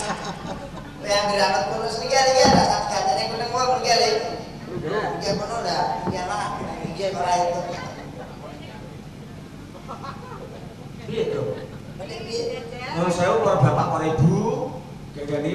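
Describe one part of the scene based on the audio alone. A young man talks into a microphone through loudspeakers.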